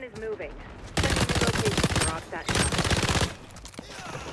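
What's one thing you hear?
A rapid burst of game gunfire rattles loudly.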